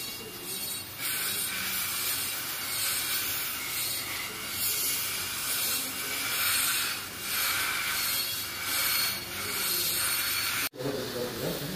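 A dental drill whines in high bursts.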